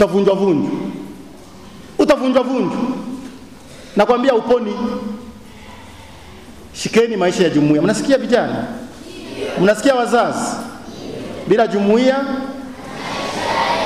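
A man preaches into a microphone with animation, in short bursts with pauses.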